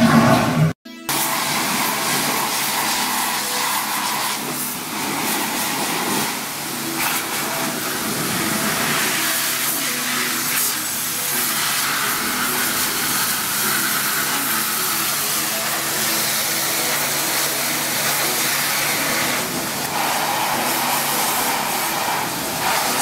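A pressure washer sprays a steady hissing jet of water.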